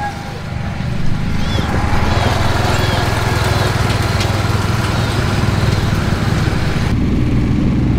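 A lawn tractor engine rumbles steadily past.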